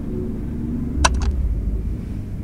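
A short electronic click sounds once.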